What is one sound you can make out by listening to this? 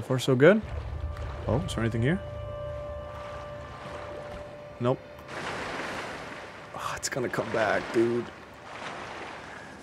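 Water splashes as a figure swims.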